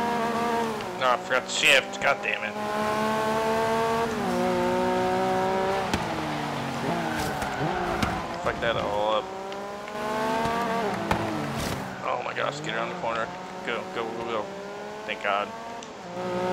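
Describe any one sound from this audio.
Tyres screech on the road during sharp turns.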